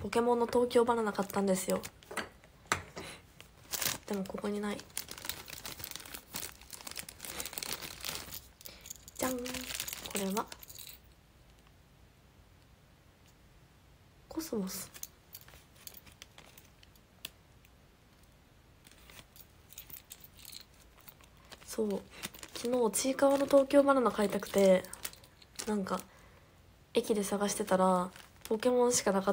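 A young woman talks casually and close to a microphone.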